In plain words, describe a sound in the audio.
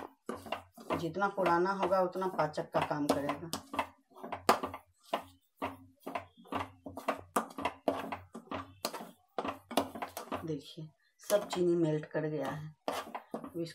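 A spatula scrapes and taps against a metal pan.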